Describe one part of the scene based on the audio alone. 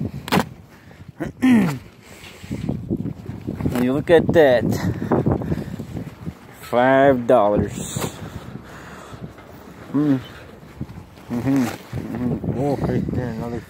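Stiff fabric rustles as a hand pulls it back.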